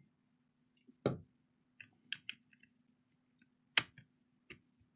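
A laptop battery clicks and knocks as it is set into place.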